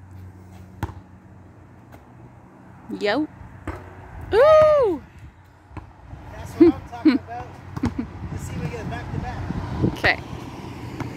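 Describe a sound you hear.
A basketball bounces on a hard outdoor court with sharp thuds.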